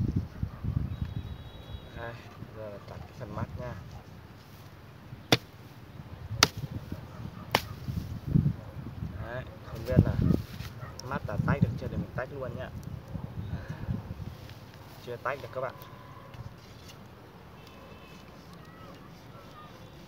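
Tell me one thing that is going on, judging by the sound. Bamboo cracks and splits apart.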